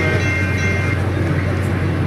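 A train horn sounds briefly.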